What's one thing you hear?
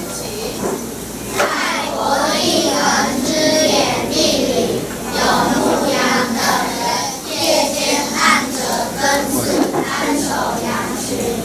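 A choir of children sings together in a room with some echo.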